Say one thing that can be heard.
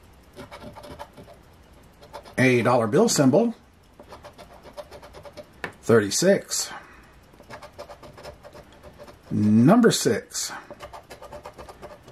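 A coin scrapes across a scratch card.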